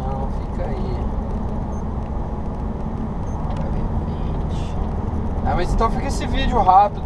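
A car engine hums steadily with road noise from inside the car.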